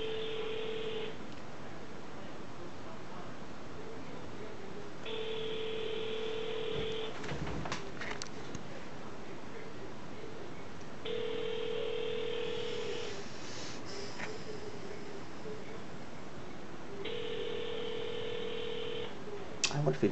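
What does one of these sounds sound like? A phone's ringing tone sounds through a handset earpiece at a steady, repeating pace.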